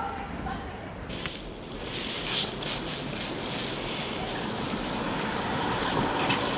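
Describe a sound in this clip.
Leaves rustle softly.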